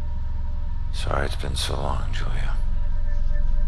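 A man speaks quietly with a low voice.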